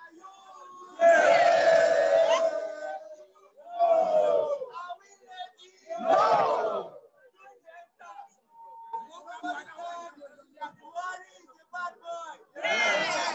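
A crowd of men chants loudly in bursts outdoors.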